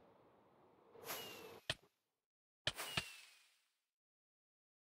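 A video game firework rocket launches with a whoosh.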